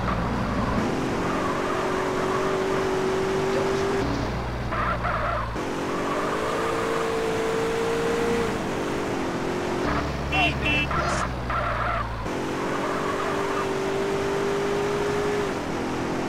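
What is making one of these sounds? Tyres screech as a car skids around bends.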